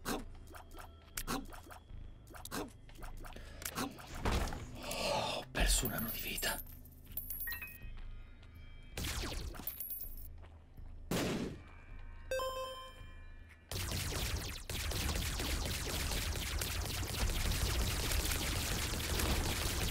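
Small popping shots fire in quick bursts.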